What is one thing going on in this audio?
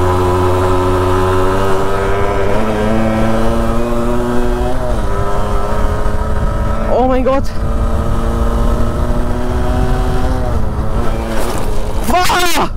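A motorcycle engine hums and revs up and down close by.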